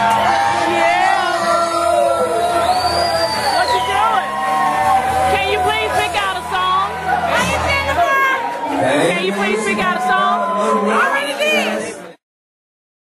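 A young woman shouts and sings along with animation close by.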